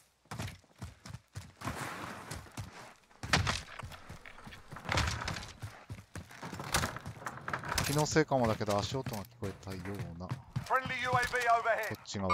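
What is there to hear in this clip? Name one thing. Footsteps crunch and thud quickly.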